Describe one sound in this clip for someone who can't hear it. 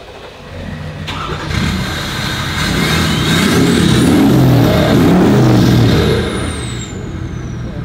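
A diesel truck engine revs loudly through its exhaust, then settles.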